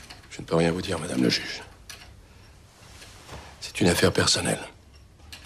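A middle-aged man speaks calmly and close by, in short phrases.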